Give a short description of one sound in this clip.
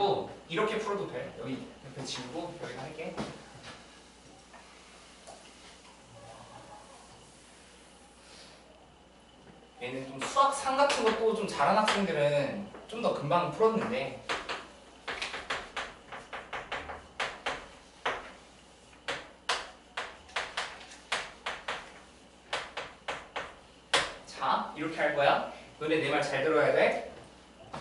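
A young man lectures calmly.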